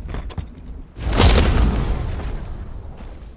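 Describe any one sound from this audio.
A heavy punch lands with a loud, booming thud.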